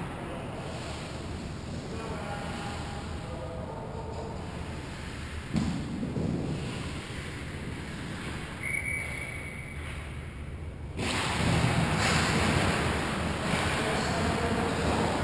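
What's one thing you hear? Skate blades scrape and hiss across ice in a large echoing rink.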